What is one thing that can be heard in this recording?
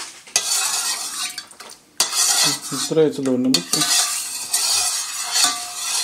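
A spoon stirs and splashes water in a bowl.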